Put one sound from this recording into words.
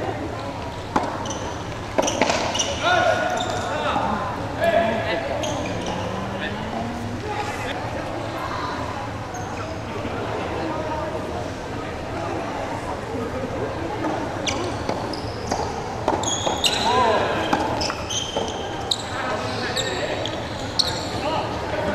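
Paddles strike a ball with sharp pops.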